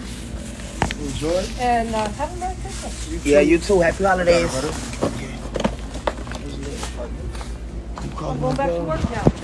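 A young man speaks with animation close to a phone microphone.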